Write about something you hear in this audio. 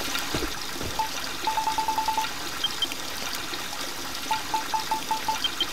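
Short electronic blips tick quickly in a row.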